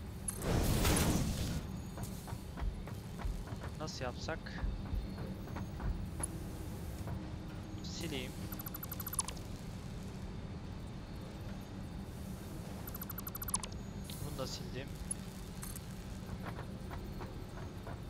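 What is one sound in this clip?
A man talks calmly into a microphone.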